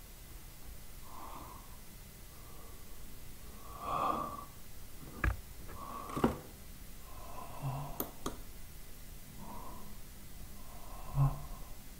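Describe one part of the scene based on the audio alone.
A young man murmurs quietly close to a microphone.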